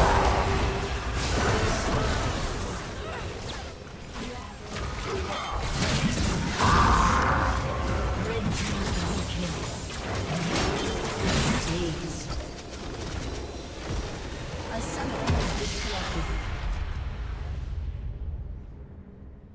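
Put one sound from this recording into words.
Spell blasts, whooshes and explosions crackle in a fast video game battle.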